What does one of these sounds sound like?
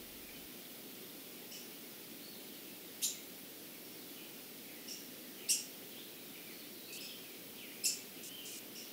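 A small bird chirps.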